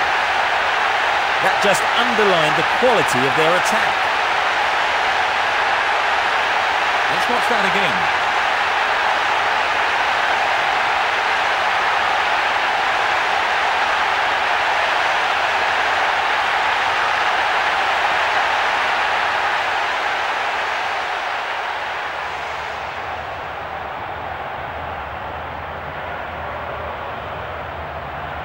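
A large stadium crowd roars steadily, then grows quieter.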